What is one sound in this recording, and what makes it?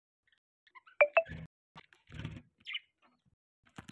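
A budgie chirps and squawks close by.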